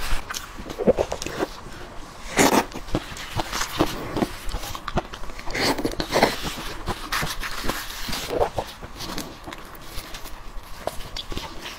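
Leaves rustle and crinkle as hands tear food apart, close by.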